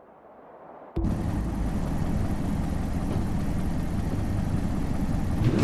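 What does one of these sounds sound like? An engine rumbles loudly as an off-road truck drives over rough, snowy ground.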